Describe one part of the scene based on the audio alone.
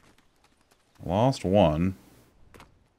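A man speaks briefly with animation, close to a microphone.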